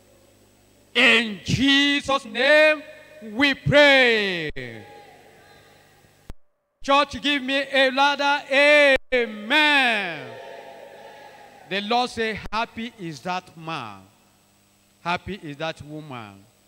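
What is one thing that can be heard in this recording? A man preaches loudly and with animation through a microphone in an echoing hall.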